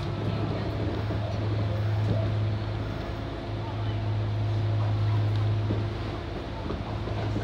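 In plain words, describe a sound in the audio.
A train's motor hums steadily.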